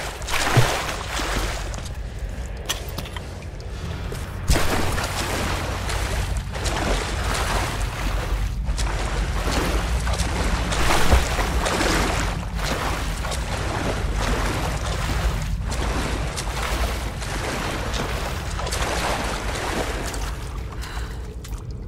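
Water splashes and sloshes as someone wades through it.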